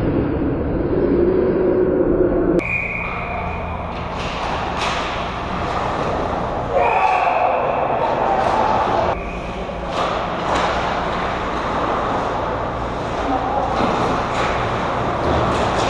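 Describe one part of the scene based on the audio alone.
Skates scrape and carve on ice in an echoing rink.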